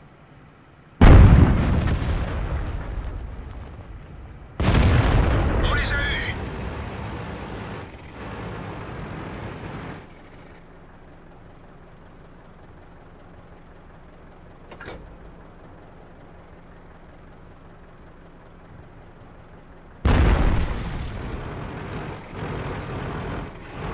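Tank cannons fire loud booms that rumble away.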